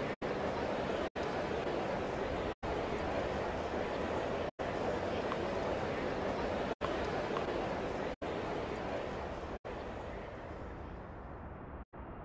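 A crowd murmurs steadily in a large arena.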